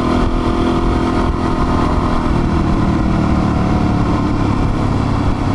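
A single-cylinder dual-sport motorcycle engine thrums while cruising.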